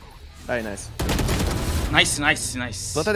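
Gunfire bursts in a video game.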